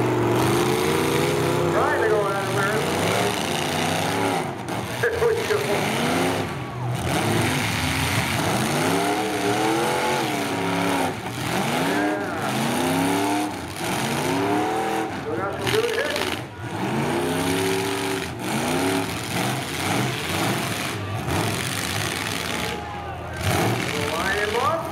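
Car engines rev loudly, rising and falling over and over.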